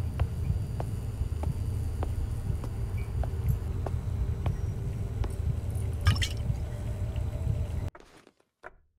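Slow footsteps thud on a hard floor.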